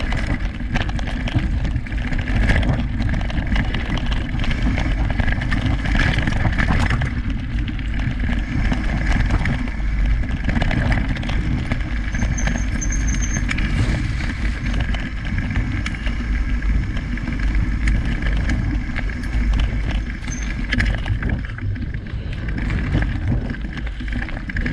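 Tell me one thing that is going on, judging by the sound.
Wind rumbles steadily across a microphone.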